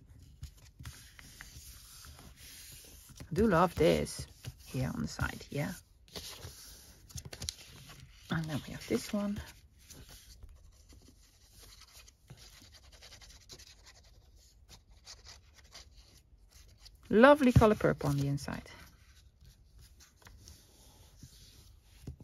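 Paper rustles as hands smooth and press it flat.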